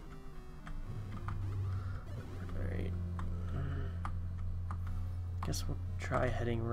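Short electronic blips of a retro game sound.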